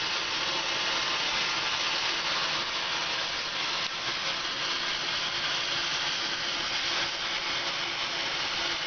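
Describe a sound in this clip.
An oxy-gas torch flame roars and hisses.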